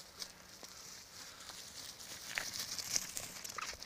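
Dogs' paws thud softly on grass as they run.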